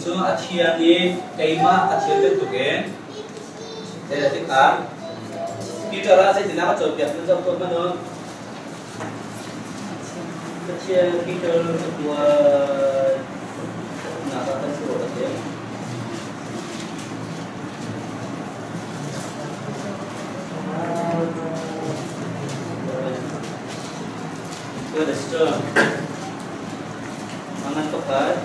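A middle-aged man speaks with animation, close by.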